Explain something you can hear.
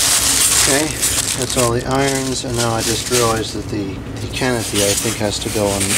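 Cardboard and foam packaging scrape and bump.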